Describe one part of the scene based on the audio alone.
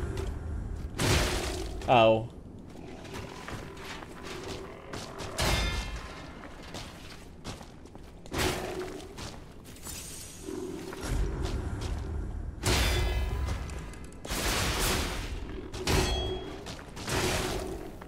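Metal weapons clash and clang in bursts.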